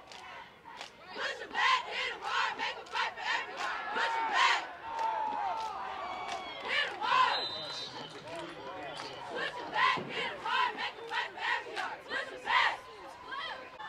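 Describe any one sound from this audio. Spectators clap their hands in bursts.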